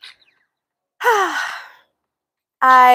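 A young woman sighs out a long breath.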